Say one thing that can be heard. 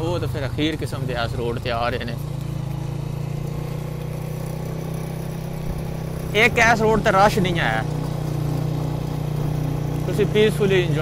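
A motorcycle engine hums steadily at low revs.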